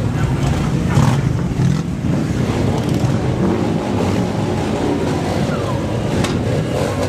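A crowd of spectators cheers.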